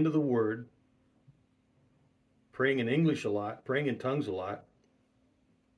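A middle-aged man speaks calmly and closely into a microphone, pausing between phrases.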